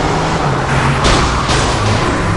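A car crashes into something with a loud bang.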